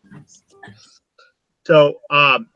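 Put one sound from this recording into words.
An elderly woman speaks softly over an online call.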